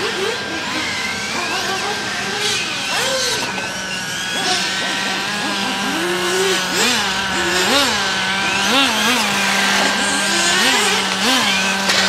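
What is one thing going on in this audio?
Electric motors of small racing cars whine, rising and falling in pitch as they speed up and slow down.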